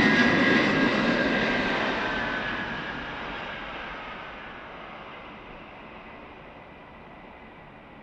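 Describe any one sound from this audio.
Jet engines roar loudly and slowly fade as a large plane passes.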